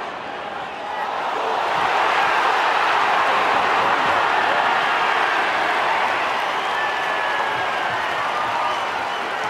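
A large crowd roars and cheers, swelling louder.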